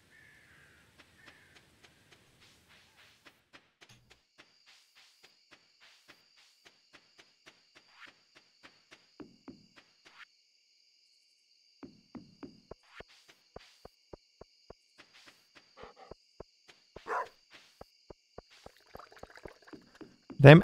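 Light footsteps tap quickly and steadily.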